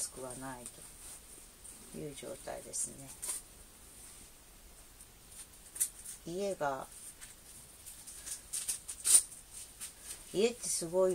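A woman speaks calmly close by, in short phrases.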